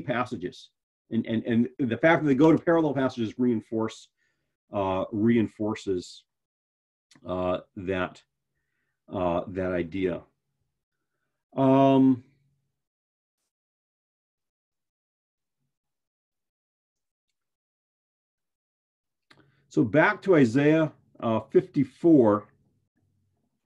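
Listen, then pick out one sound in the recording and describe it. A man speaks calmly and clearly into a close microphone, pausing now and then.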